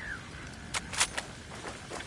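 A fire crackles and roars nearby.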